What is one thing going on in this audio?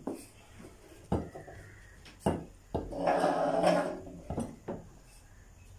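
A spoon scrapes and knocks against a clay pot.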